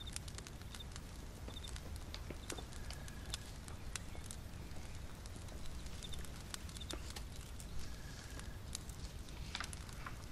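A fire crackles and pops close by.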